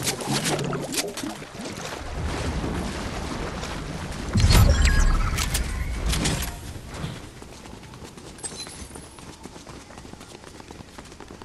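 Footsteps run and rustle through leafy plants.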